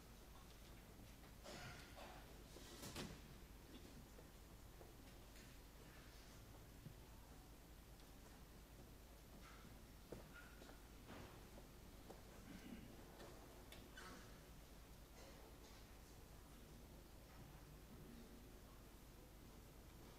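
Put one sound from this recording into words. An audience murmurs and coughs softly in a large hall.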